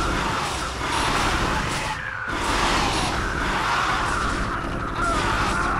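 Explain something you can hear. Rapid gunfire rattles in a battle.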